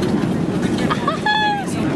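A young woman speaks close by, cheerfully.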